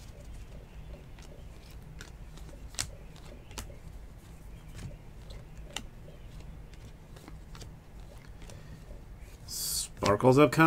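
Cards slide and click softly as they are flipped through by hand.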